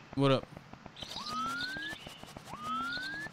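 A cartoon character's footsteps patter quickly.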